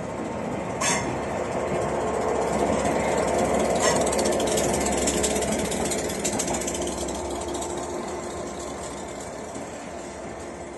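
A diesel locomotive engine roars loudly as it passes and then drones away.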